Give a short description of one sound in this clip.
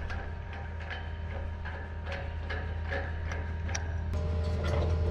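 A valve handle clicks and clanks on a steel tank.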